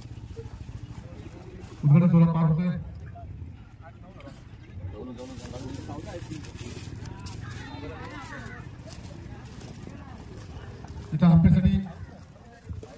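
Men and children talk among themselves outdoors.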